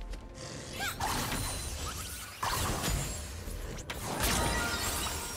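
Magic spells and weapons clash and crackle in a fast fight.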